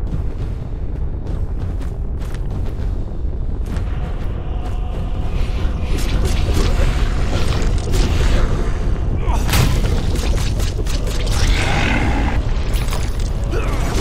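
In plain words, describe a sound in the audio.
Fire whooshes and roars in bursts.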